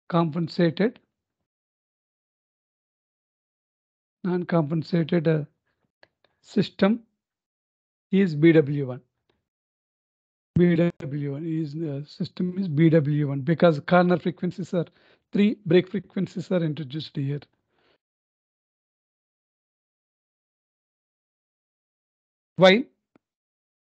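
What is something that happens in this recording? A middle-aged man lectures calmly into a microphone, in short phrases with pauses.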